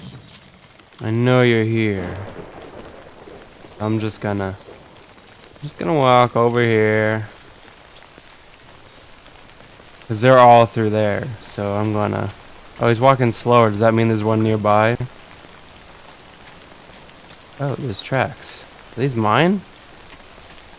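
A young man talks animatedly and close into a microphone.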